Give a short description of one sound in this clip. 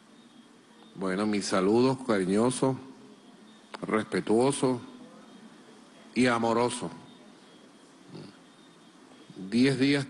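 A middle-aged man speaks calmly into a microphone, in bursts with pauses.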